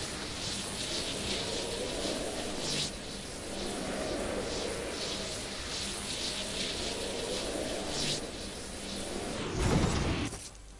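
Wind rushes past steadily during a glide, then stops.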